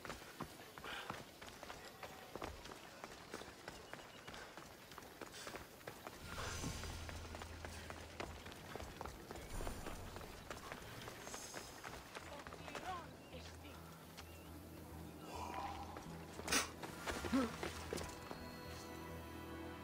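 Footsteps run quickly over stone paving.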